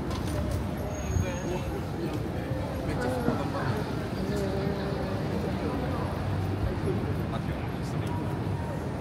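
Men and women chatter nearby on the street.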